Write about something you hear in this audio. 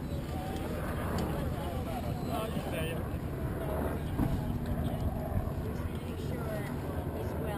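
Water laps and splashes against a boat's hull.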